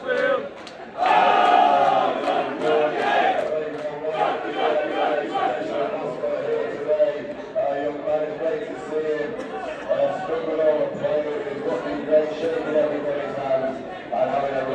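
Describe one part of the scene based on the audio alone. A crowd of men sings a loud chant together outdoors.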